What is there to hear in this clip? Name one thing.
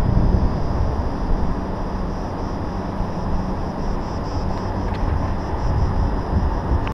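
Leaves rustle in the wind.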